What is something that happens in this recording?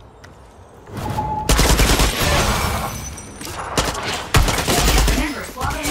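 A rifle fires in loud bursts.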